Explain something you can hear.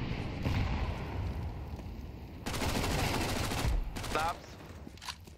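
A fire roars and crackles loudly.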